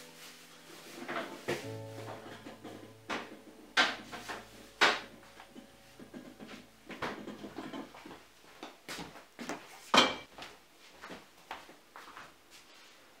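Glass jars and dishes clink and knock.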